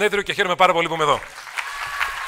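A man speaks into a microphone through loudspeakers in a large hall.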